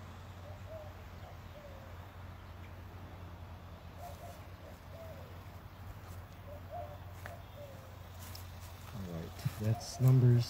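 A man chants a prayer outdoors, at a distance at first and then closer.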